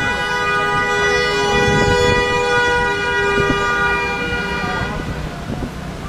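City traffic rumbles by outdoors.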